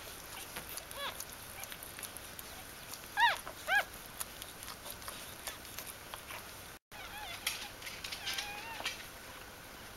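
Newborn puppies squeak and whimper softly up close.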